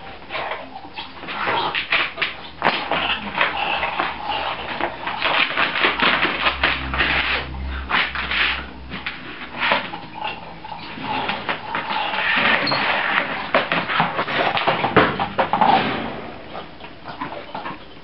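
A puppy rummages through cloth and toys in a plastic basket, with rustling and knocking.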